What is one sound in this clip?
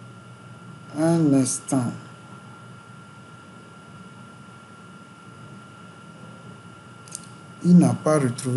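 A man speaks calmly through a microphone, in short phrases.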